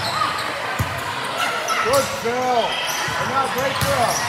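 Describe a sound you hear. A volleyball is struck with a smack.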